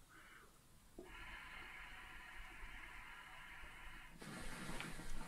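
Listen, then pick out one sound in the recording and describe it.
A water pipe bubbles and gurgles as a man draws on it.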